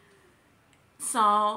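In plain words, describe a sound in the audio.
A young woman sings a long, high note.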